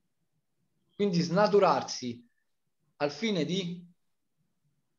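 A man speaks calmly in two short phrases over an online call.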